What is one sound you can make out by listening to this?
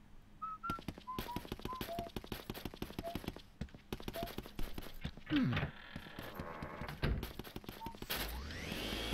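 Quick footsteps tap across a wooden floor.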